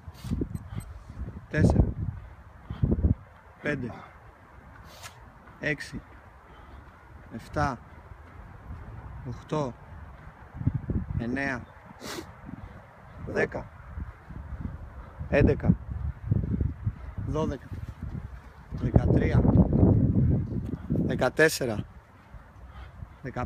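A man exhales sharply with effort, again and again.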